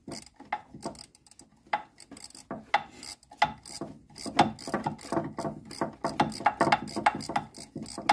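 Metal engine parts clink and rattle under a hand.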